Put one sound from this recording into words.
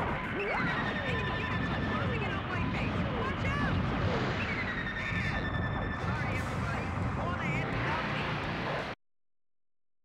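Rocket thrusters roar with a heavy, steady rumble.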